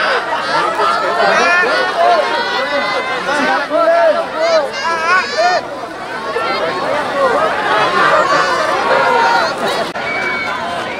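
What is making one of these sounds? A crowd of men and women shouts and chatters excitedly close by.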